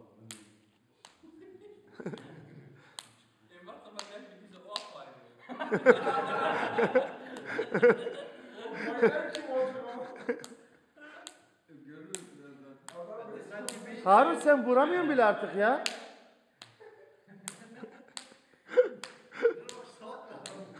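Young men talk and laugh loudly close by.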